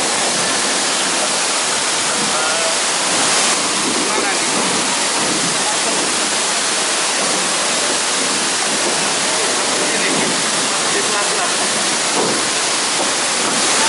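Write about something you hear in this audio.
Wooden oars splash and dip in calm water.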